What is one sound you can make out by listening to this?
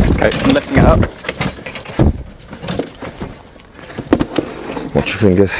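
A wire cage rattles and clanks against a plastic pet carrier.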